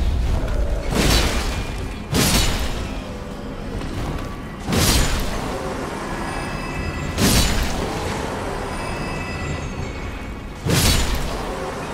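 Heavy sword blows strike hard with sharp, loud impacts.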